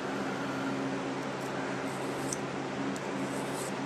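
A small plastic part clicks as it is fitted into a handle.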